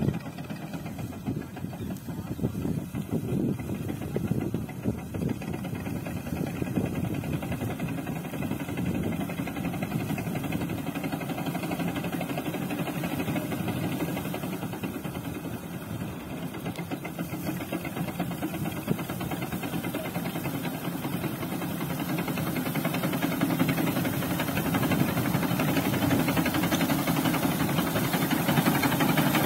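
A small engine-driven reaper cuts wheat, drawing closer.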